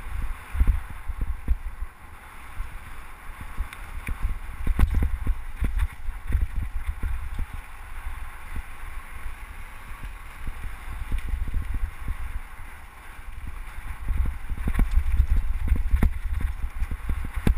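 Wind rushes past a microphone.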